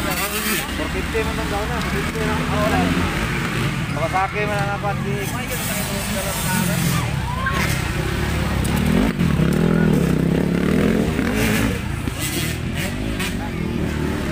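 A crowd chatters and cheers in the distance.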